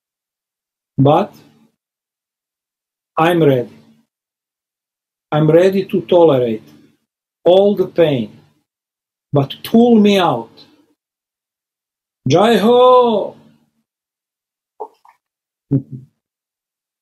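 A middle-aged man speaks with animation in short bursts over an online call.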